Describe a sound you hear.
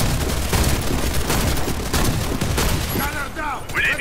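An automatic rifle fires rapid shots.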